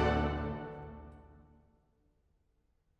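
An orchestra's final chord rings out and fades away in a large echoing hall.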